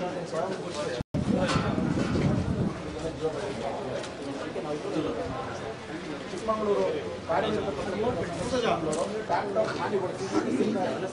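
Several men talk over one another in a small crowd.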